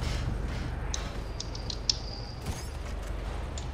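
Footsteps clank on a metal ramp.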